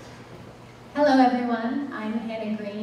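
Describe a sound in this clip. A woman speaks into a microphone at a podium.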